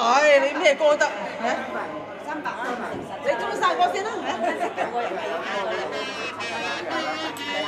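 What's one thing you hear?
An elderly woman speaks with animation into a microphone, heard through a loudspeaker in a large room.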